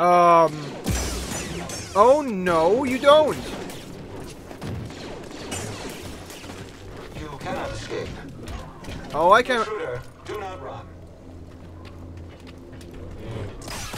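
A lightsaber hums and swooshes.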